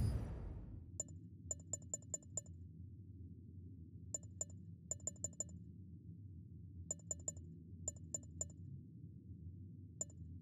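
Short soft menu clicks tick in quick bursts.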